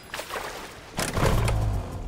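A dirt bike engine starts and idles with a low hum.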